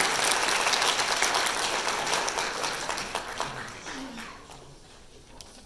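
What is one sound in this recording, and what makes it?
An audience applauds in a large hall, and the clapping fades away.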